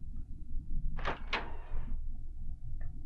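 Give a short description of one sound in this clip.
A heavy door creaks open.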